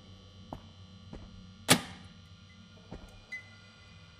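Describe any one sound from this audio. A switch clicks sharply.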